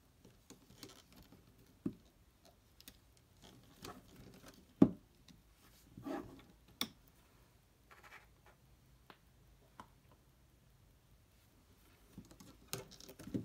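A plastic hook clicks and taps against rubber bands.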